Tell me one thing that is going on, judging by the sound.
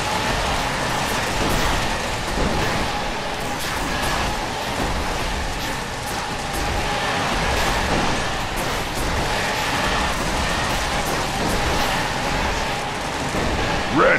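Game explosions boom and crackle again and again.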